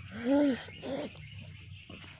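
A small child cries out close by.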